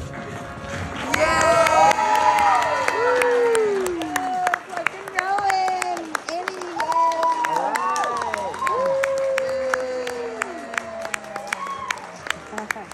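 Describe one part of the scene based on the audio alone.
Young people cheer and whoop loudly in high voices.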